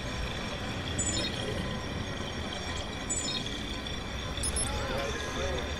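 Short electronic beeps chirp now and then.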